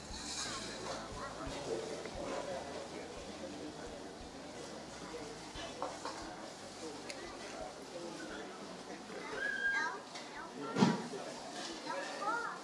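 An elderly man speaks softly into a microphone.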